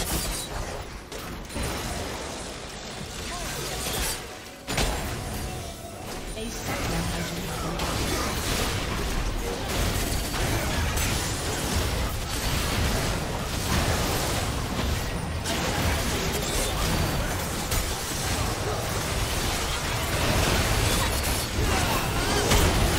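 Game spell effects and attack impacts crackle and boom.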